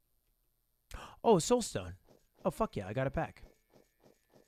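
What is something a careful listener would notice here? A young man speaks with animation into a microphone.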